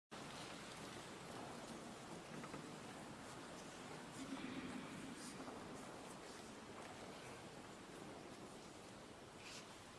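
A wind ensemble plays softly in a large echoing hall.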